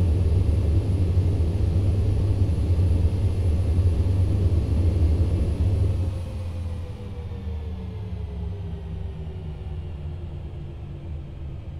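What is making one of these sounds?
An airliner rumbles loudly along a runway, then quietens as it slows.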